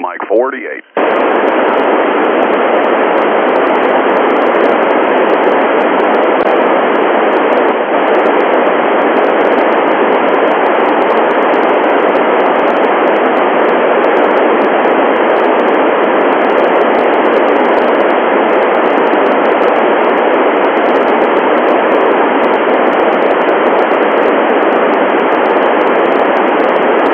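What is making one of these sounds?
A radio hisses with loud, steady static.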